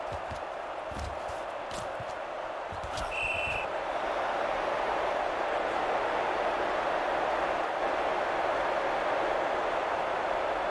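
A stadium crowd roars and swells louder.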